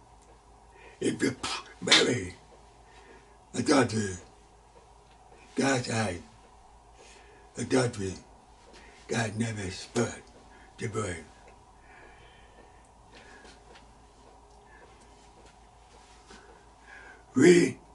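An elderly man speaks slowly and deliberately into a close microphone, with long pauses.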